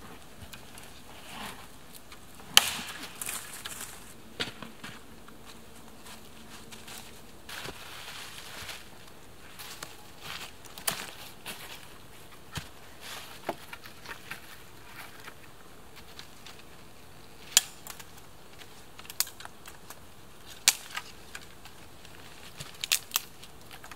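Dead branches snap and crack.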